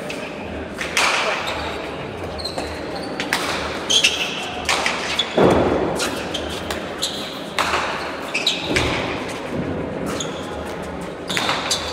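A ball smacks hard against a wall and echoes around a large hall.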